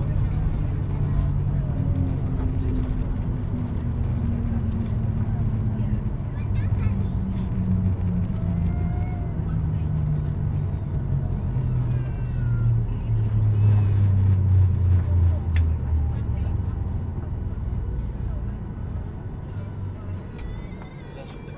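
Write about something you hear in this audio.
Jet engines roar loudly and slowly wind down in pitch.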